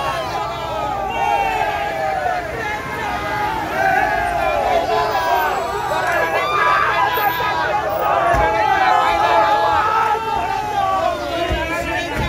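A crowd of men and women talk and shout loudly nearby outdoors.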